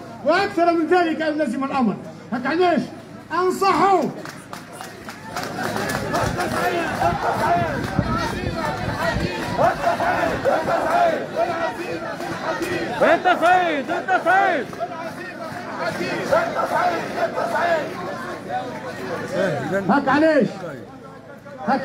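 A large crowd chants loudly together outdoors.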